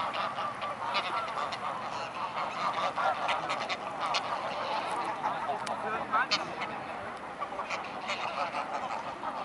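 Ducks and geese quack and chatter close by on the water.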